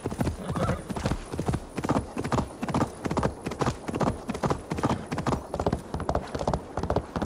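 A horse's hooves clop rhythmically on stone at a gallop.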